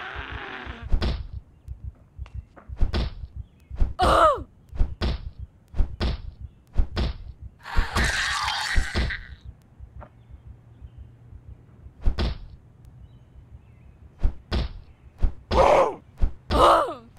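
Heavy blows thud as a bat strikes again and again.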